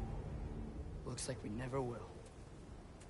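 A man answers in a deep, low voice.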